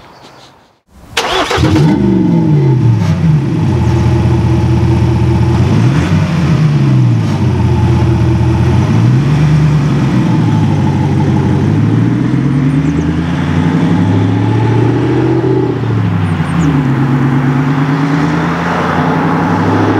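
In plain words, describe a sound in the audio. A van engine runs loudly and revs up and down repeatedly.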